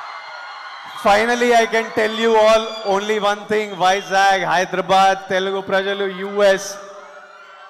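A young man sings loudly into a microphone through loudspeakers.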